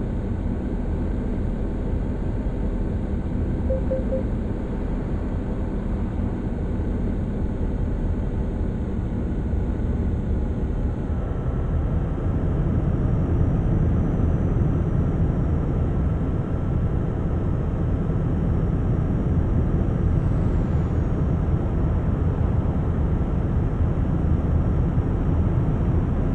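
Tyres roar on the road.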